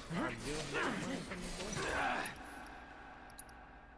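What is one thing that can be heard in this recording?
A magic blast bursts with a shimmering whoosh.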